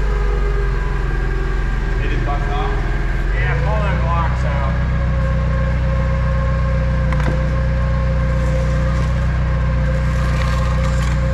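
A forklift engine idles with a low, steady rumble.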